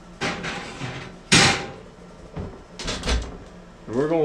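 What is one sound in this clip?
An oven door bangs shut.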